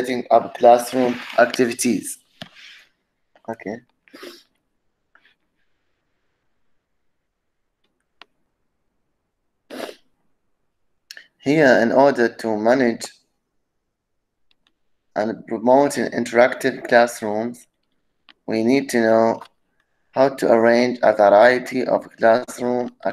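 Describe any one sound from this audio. A man speaks calmly through an online call, reading out with pauses.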